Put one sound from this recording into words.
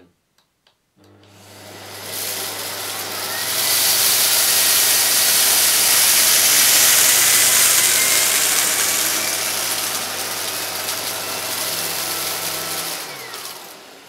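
A vacuum cleaner starts up, roars loudly and steadily, then winds down.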